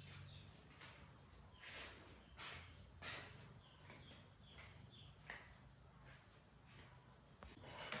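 Footsteps shuffle on a concrete floor.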